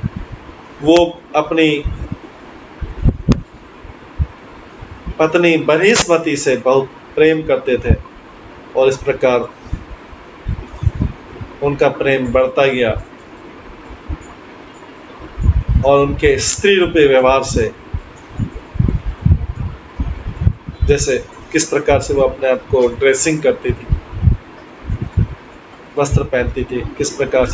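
A middle-aged man speaks calmly in pauses, heard through an online call.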